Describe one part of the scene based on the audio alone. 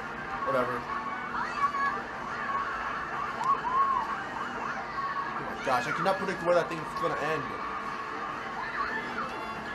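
Racing game music plays from a television speaker.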